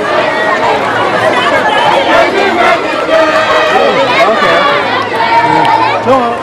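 A large crowd of men and women sings loudly together outdoors.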